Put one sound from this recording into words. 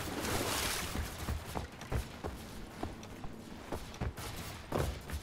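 Footsteps thud on hollow wooden boards.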